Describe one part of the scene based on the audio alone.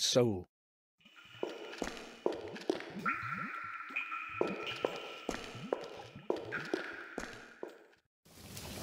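Footsteps echo on a stone floor.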